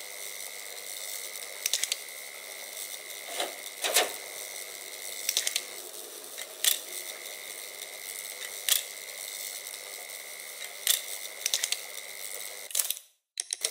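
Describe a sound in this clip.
A steady high electrical whine sounds.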